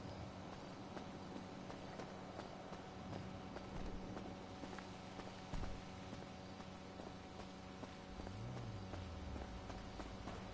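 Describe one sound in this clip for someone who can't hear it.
Quick footsteps run on hard pavement.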